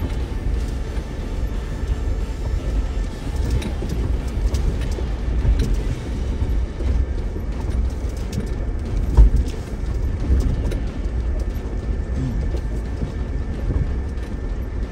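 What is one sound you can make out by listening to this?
A vehicle's body knocks and jolts over bumps.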